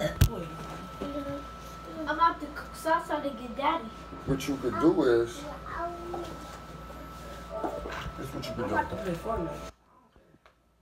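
A young boy talks close by with animation.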